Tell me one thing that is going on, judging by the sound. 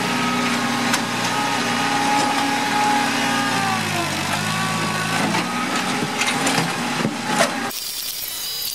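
A tractor engine runs loudly with a steady rumble.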